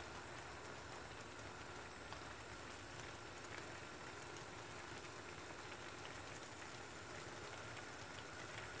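A spoon stirs through thick jam in a steel pot.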